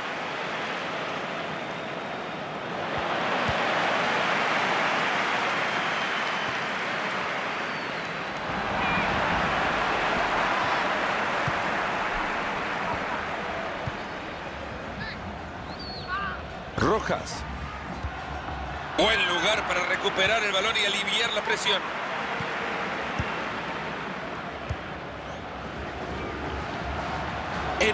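A large stadium crowd roars steadily, swelling now and then.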